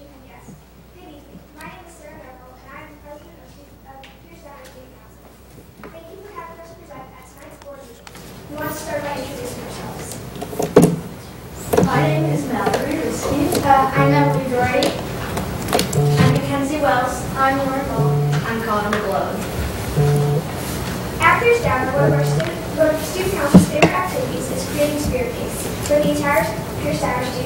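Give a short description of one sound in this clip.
A young girl reads out aloud into a microphone.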